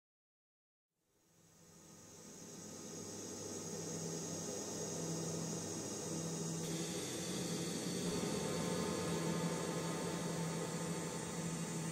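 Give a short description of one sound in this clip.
An electric guitar plays loud, distorted chords that swell in from silence.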